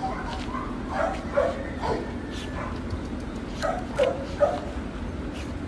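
Dogs growl and snarl playfully as they wrestle.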